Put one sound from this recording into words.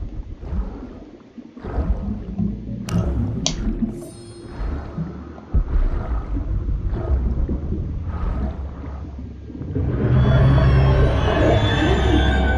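Water gurgles and bubbles around a swimmer.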